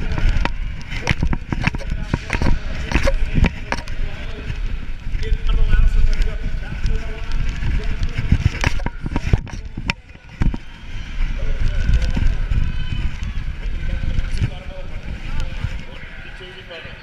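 Bicycle tyres roll and rumble over a packed dirt track.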